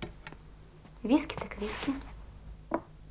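A wooden chair scrapes and creaks as a woman sits down.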